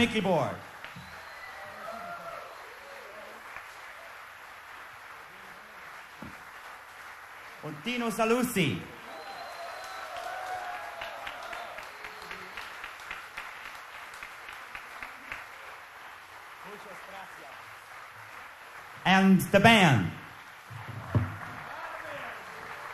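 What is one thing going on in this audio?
A big band plays jazz.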